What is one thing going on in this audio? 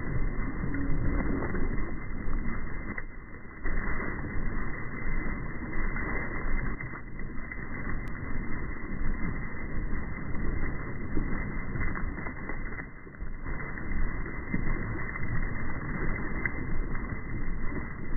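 Water splashes and churns against the side of a boat.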